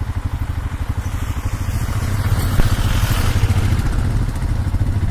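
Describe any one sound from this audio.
A van drives past in the other direction.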